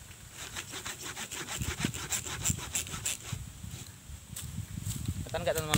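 Dry leaves rustle and crackle as a man shifts about on them.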